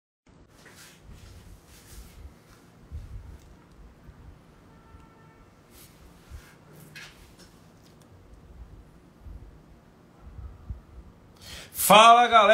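A man speaks softly and calmly close by.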